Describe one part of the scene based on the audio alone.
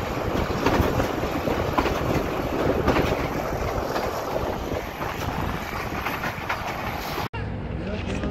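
Wind rushes past outdoors from a moving train.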